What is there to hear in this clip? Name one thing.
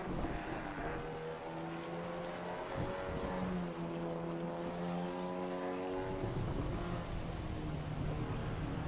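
A sports car engine roars and revs, shifting through gears.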